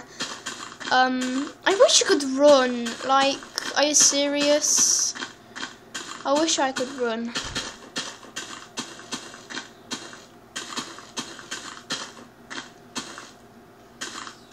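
Footsteps tread on grass at a steady pace.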